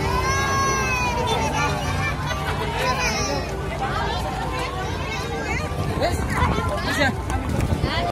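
A crowd of people chatters loudly nearby outdoors.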